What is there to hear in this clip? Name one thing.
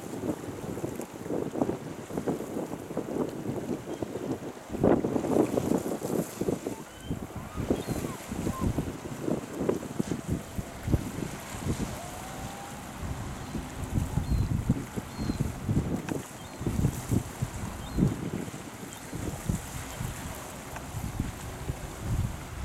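Seawater washes and splashes over rocks close by.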